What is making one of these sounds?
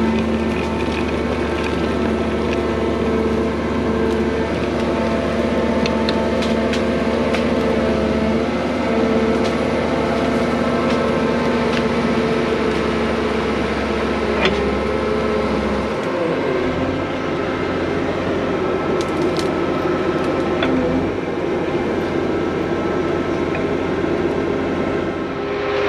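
Small clods of dirt click and knock against the blade.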